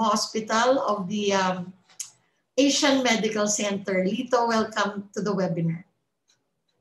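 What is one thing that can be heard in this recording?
A middle-aged woman speaks with animation over an online call.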